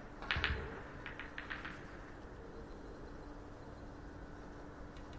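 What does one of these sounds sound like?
Footsteps tread softly on a carpeted floor.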